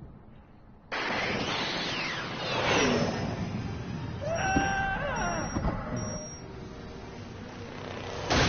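A car engine roars.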